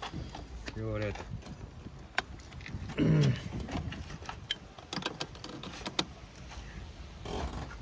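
A jumper cable clamp clicks onto a car battery terminal.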